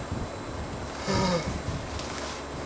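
A young man yawns loudly.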